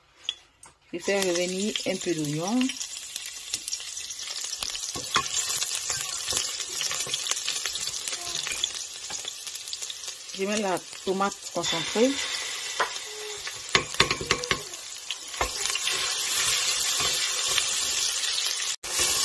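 Onions sizzle loudly in hot oil.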